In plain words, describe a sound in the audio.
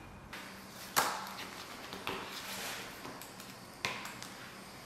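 A pen taps and is set down on a paper booklet.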